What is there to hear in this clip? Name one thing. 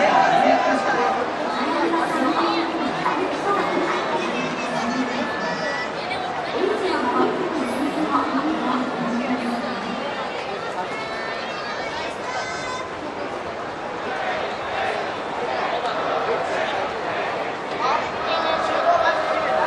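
Several men talk nearby outdoors.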